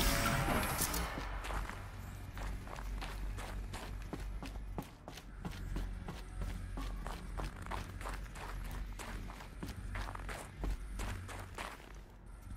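Footsteps crunch on a rough floor.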